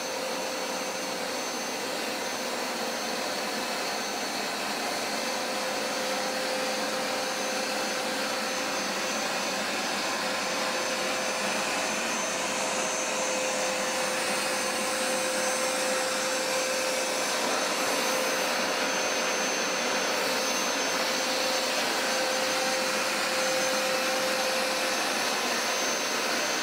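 A carpet cleaning machine hums and whirs steadily.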